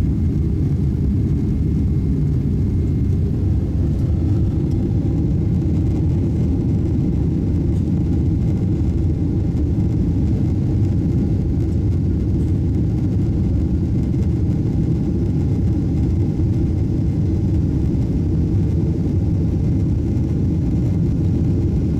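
An aircraft cabin hums with a steady, deep engine roar.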